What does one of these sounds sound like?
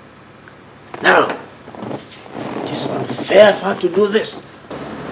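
A man speaks with strong emotion, close by.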